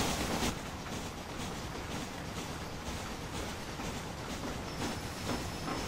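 A train rumbles steadily along the tracks, with wheels clacking in an even rhythm.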